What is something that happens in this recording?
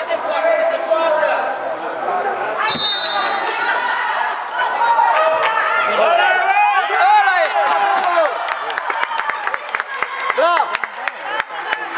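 Children shout and cheer excitedly in a large echoing hall.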